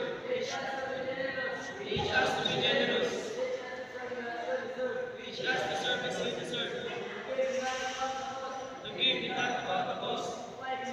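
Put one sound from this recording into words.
A young man speaks steadily in a large echoing hall.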